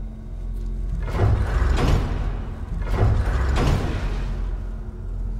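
Deep rushing whooshes surge twice in quick succession.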